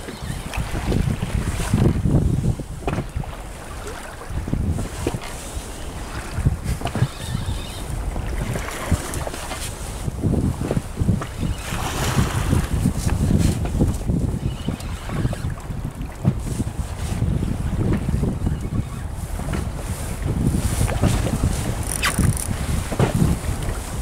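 Wind buffets the microphone outdoors on open water.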